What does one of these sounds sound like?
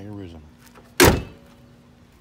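A car hood slams shut.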